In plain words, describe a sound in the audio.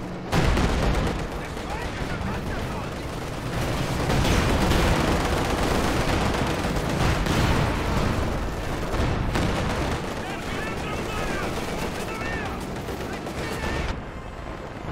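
Gunfire and explosions rumble loudly in a battle.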